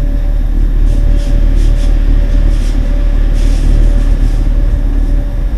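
Train wheels squeal briefly on a curve.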